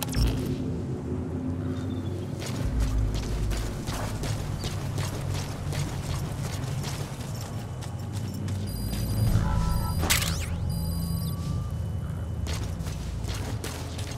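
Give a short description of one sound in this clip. Footsteps crunch on dry dirt and grass.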